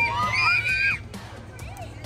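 Young girls call out excitedly.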